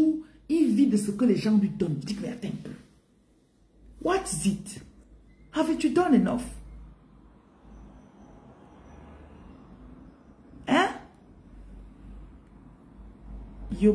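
A woman speaks with animation, close to a phone's microphone.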